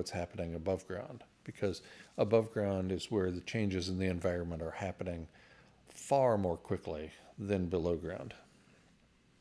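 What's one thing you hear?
A middle-aged man speaks calmly and clearly into a microphone close by.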